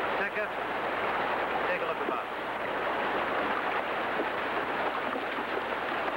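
Horses splash through shallow water.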